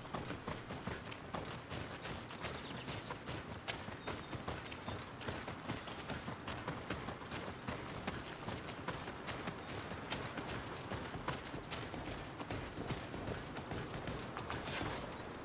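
Footsteps crunch quickly along a dirt path.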